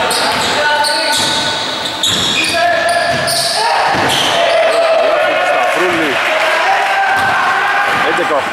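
Men call out to each other across the court.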